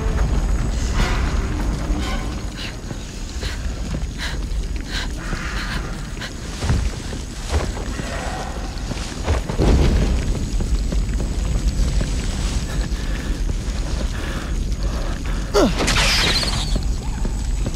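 A burning torch whooshes as it swings through the air.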